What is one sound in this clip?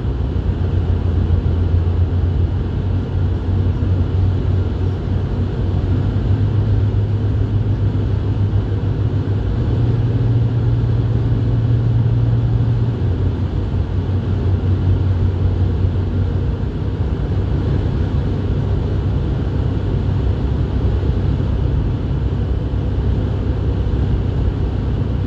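A car engine and tyres rumble steadily from inside a moving car.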